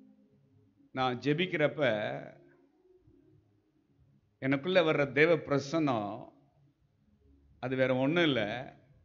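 A middle-aged man speaks with feeling into a microphone, in short phrases with pauses.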